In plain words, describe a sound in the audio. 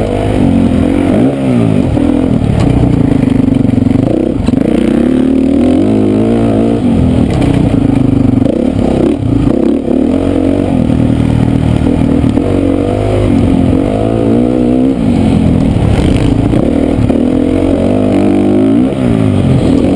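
A dirt bike engine revs loudly up and down close by.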